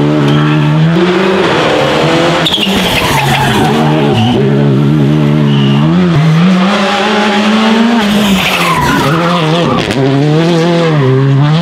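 A rally car engine roars loudly, revving up and dropping as the car speeds through bends.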